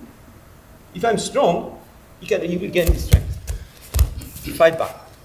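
An older man speaks calmly and explains, close by.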